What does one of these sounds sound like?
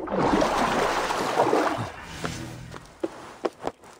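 Water splashes as a figure plunges in and swims.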